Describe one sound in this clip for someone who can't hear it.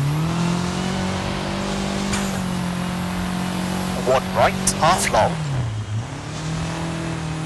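A rally car engine drones at high revs, then drops in pitch as the car slows and picks up again.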